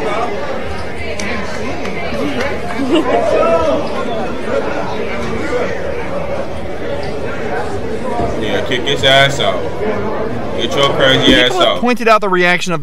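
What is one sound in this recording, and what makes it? A crowd chatters and shouts in a large, echoing hall.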